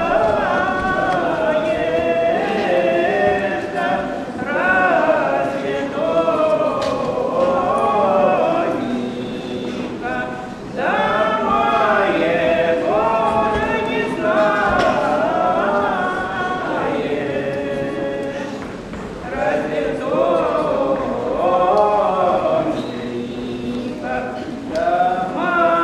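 A man sings along in an echoing hall.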